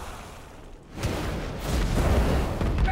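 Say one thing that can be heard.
A fiery blast roars with a deep rumble.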